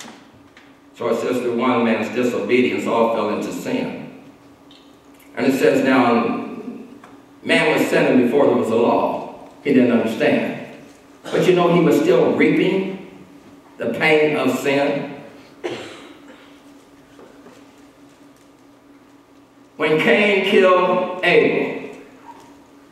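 A man preaches through a microphone in a large echoing hall, speaking in measured phrases with pauses.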